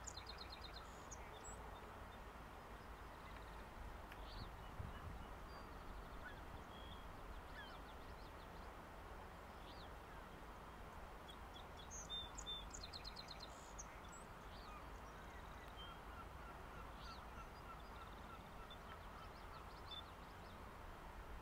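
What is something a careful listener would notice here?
A gull tugs at an eel on wet seaweed.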